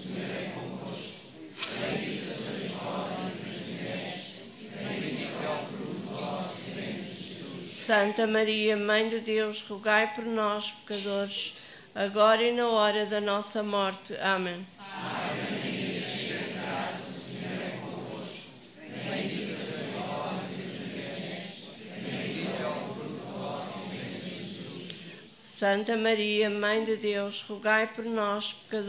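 A woman recites steadily into a microphone, heard over loudspeakers.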